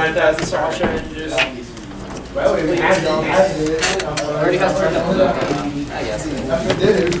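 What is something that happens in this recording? Playing cards rustle and slide against each other.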